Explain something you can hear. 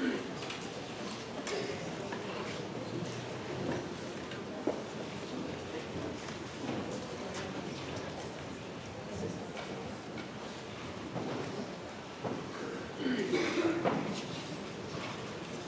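A large crowd murmurs and chatters in a large echoing hall.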